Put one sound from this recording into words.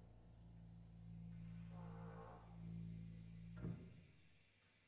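A tuba holds a low, steady note that echoes in a large hall, then stops.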